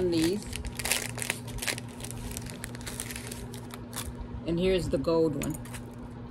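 Plastic packaging crinkles and rustles as hands handle it.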